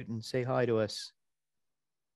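An elderly man speaks briefly over an online call.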